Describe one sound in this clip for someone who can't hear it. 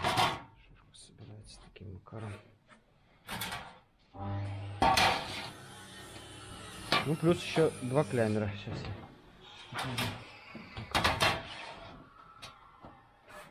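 Thin sheet-metal roofing panels clink and rattle as they are hooked together on a wooden table.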